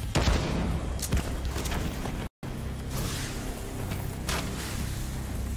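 Gunshots crack now and then.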